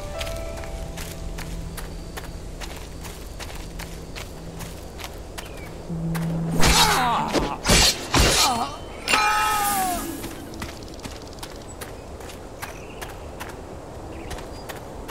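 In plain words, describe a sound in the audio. Footsteps tread steadily on grass.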